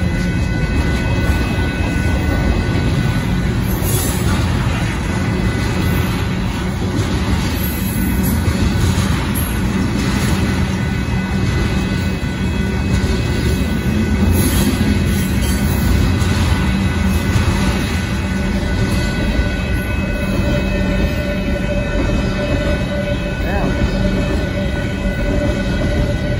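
Crossing bells ring steadily.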